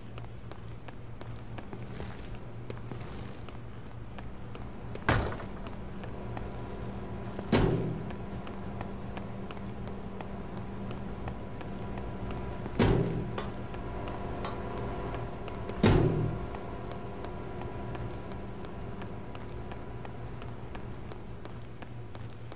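Footsteps walk on a hard floor.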